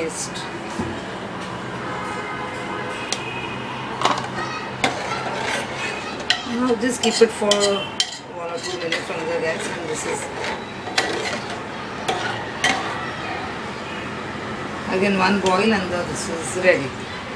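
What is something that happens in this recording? A metal spoon scrapes and taps inside a pot.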